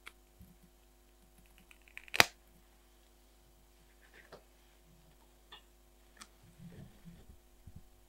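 Tweezers tap and click against paper.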